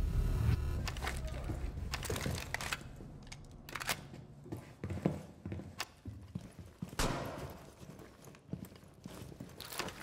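Footsteps thud across a hard floor.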